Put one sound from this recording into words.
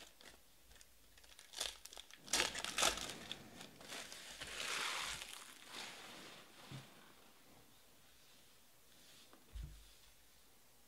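Foil card packs crinkle and rustle in hands.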